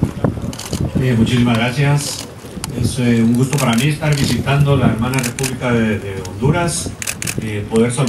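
A man speaks calmly into a microphone outdoors.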